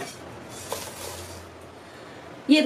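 Dry spices slide and patter off a pan onto a plate.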